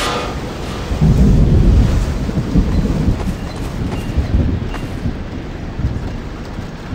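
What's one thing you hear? A tornado rumbles deeply and loudly.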